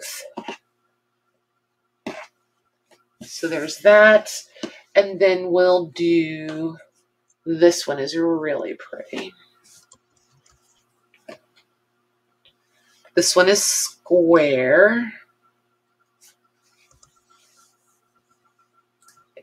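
Cloth rustles softly as it is folded and laid down.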